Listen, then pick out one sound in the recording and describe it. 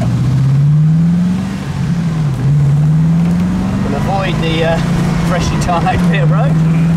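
Wind rushes past an open car.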